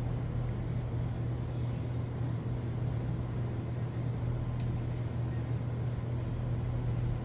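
Plastic nippers snip parts off a plastic frame with small clicks.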